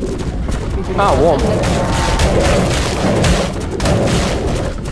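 Large beasts snarl and roar while fighting.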